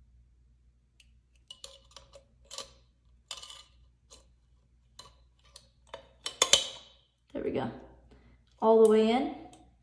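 A metal key clicks and scrapes against a can's tab.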